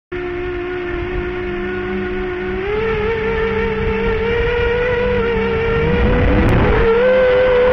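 Propeller wash buffets and rumbles close by.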